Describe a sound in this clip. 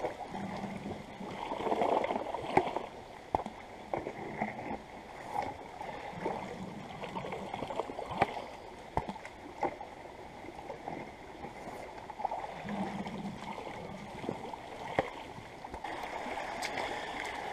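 A stream trickles over rocks.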